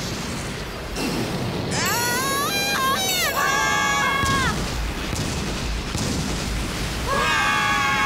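A loud rushing roar of an energy blast surges.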